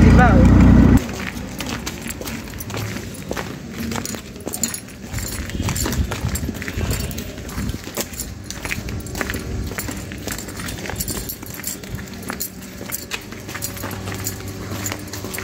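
Footsteps crunch on a gravelly dirt path.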